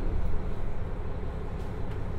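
A train begins to roll slowly forward.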